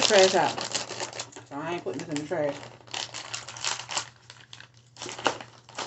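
A plastic snack wrapper crinkles in a woman's hands.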